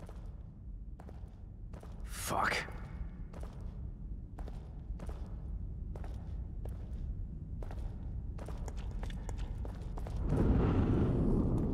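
Footsteps crunch over debris on a hard floor.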